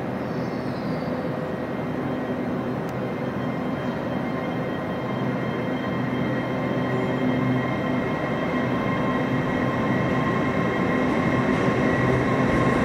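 A train approaches with a steadily growing engine rumble, echoing under a large roof.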